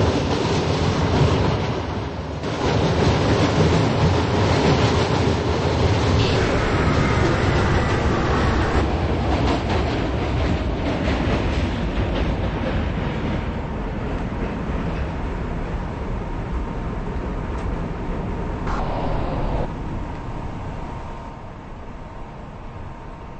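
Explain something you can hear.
A subway train rumbles and rattles along the tracks, then slows and quietens.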